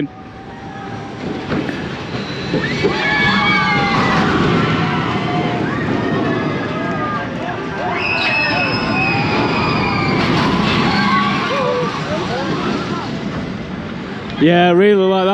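A roller coaster roars along its track nearby.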